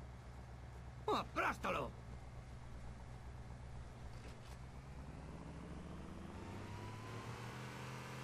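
An off-road jeep's engine drones as it drives, rising in pitch toward the end.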